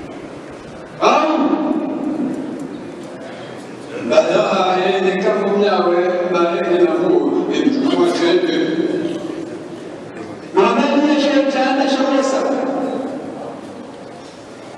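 An elderly man chants loudly through a microphone and loudspeakers, echoing in a large hall.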